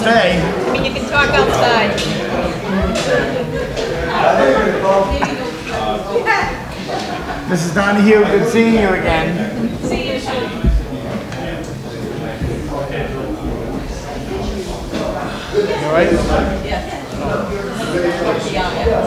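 A crowd of men and women chatter close by in a room.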